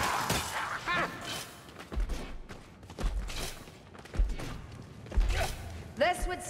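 Heavy footsteps thud on rocky ground.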